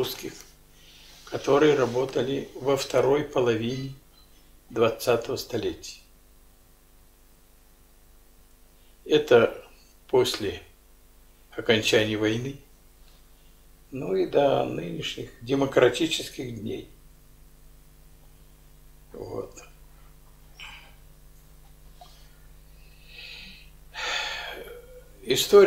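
An elderly man speaks slowly and haltingly, close by, with long pauses.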